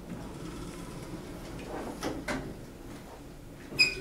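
Elevator doors slide shut with a soft thump.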